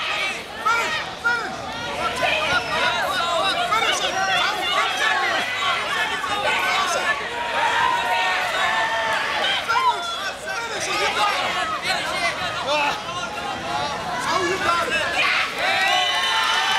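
A crowd of men and women shouts and cheers loudly nearby, in a large echoing hall.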